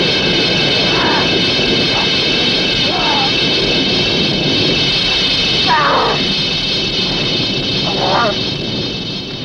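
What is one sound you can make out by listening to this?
A young woman screams in terror close by.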